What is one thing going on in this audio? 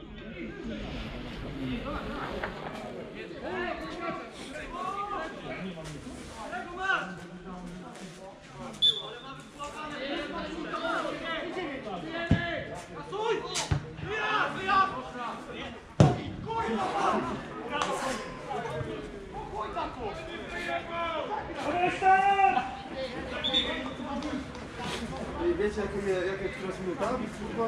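Football players shout and call to each other across an open field.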